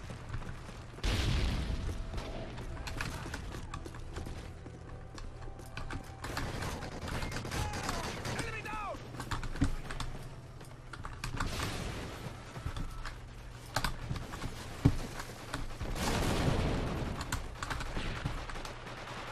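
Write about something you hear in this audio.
A mouse clicks.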